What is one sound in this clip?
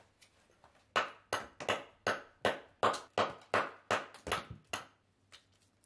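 A hammer strikes stone in quick blows.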